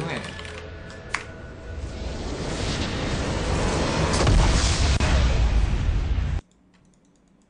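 Loud game sound effects of a magical blast whoosh and roar.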